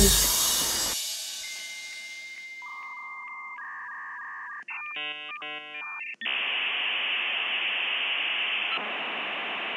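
An electronic circuit gives off steady buzzing tones.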